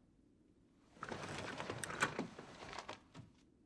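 Paper rustles under a hand.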